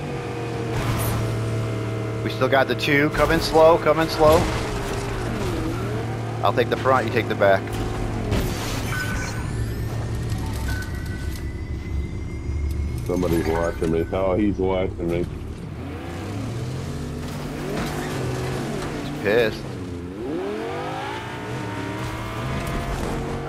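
A car engine hums and revs as it drives.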